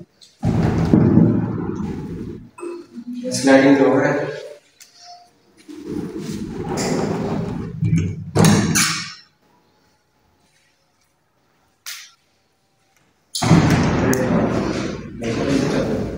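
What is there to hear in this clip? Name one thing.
Wooden cabinet doors swing open and shut with soft knocks.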